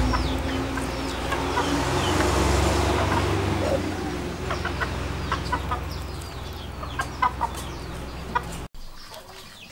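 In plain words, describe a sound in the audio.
A knife scrapes and cuts through cooked meat.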